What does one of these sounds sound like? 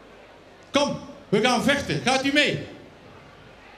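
A man sings loudly into a microphone through loudspeakers in a large echoing hall.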